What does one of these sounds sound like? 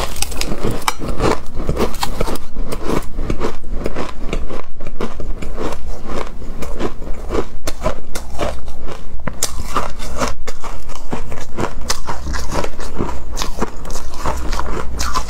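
A spoon scrapes against a metal bowl.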